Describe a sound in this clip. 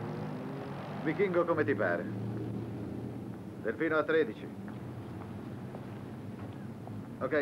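A middle-aged man speaks tensely into a telephone, close by.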